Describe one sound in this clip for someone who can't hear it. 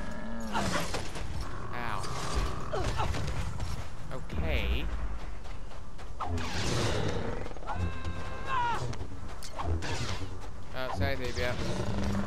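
A lightsaber hums and swooshes as it swings.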